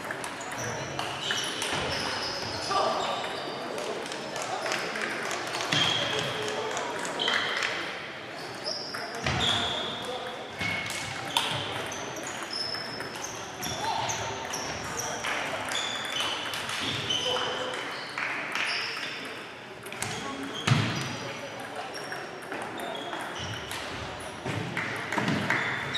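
Ping-pong balls click rapidly on tables and paddles throughout a large echoing hall.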